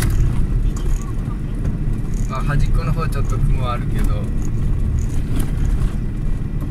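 A vehicle engine rumbles low and steady from inside the cab.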